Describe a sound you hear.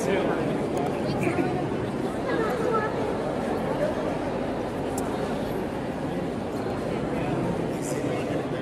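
A large crowd chatters loudly all around, close by.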